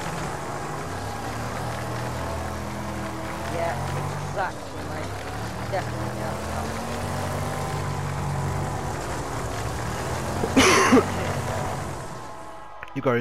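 A race car engine roars at speed through a turn.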